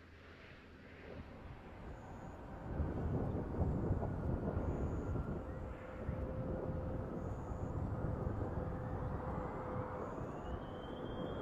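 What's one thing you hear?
A large craft's tyres rumble along a runway as it rolls to a stop.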